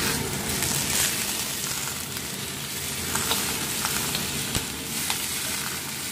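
A whole roast goose is set down onto onions in a pan with a soft thud.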